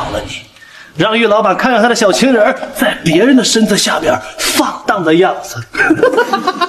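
A young man speaks close up, harshly and with sneering anger.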